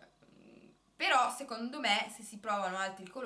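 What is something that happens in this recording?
A young woman talks with animation up close.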